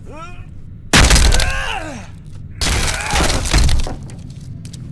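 An axe smashes loudly through a wooden door.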